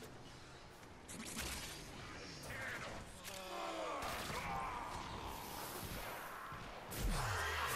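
Futuristic energy blasts crackle and whoosh.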